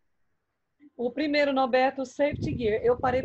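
A woman talks with animation over an online call.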